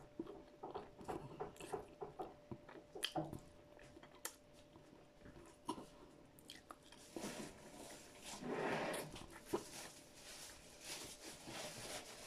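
A woman sucks and licks her fingers close to a microphone.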